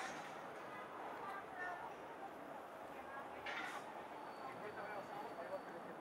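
Passers-by talk on a busy city sidewalk.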